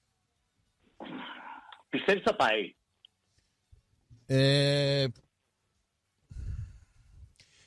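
A man speaks with animation into a microphone, heard over the radio.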